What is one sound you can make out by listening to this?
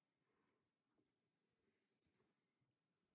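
Small beads and a metal clasp click faintly as fingers handle them.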